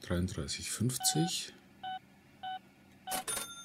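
Keypad buttons beep as an amount is typed on a card terminal.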